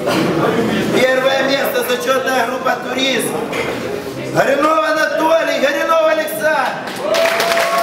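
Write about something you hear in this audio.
A young man reads out announcements loudly.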